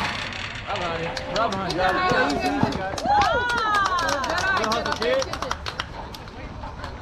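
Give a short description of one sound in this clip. Young players shout and cheer loudly outdoors.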